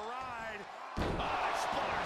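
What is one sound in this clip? A wrestler's body slams heavily onto a ring mat.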